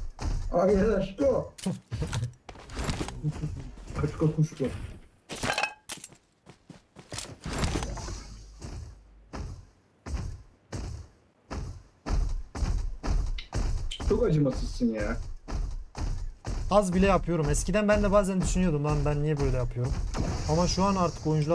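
Heavy robotic footsteps thud and clank.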